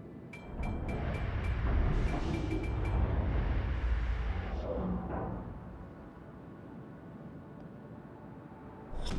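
Water rushes along the hull of a large ship under way.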